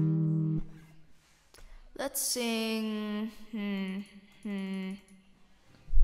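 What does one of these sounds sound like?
A young woman speaks close to a microphone in a drawn-out, sing-song way.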